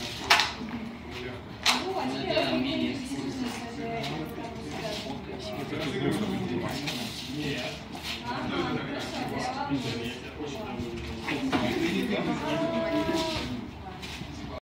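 A crowd of young men and women chatters nearby in an echoing room.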